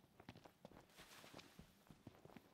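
Dry brush rustles.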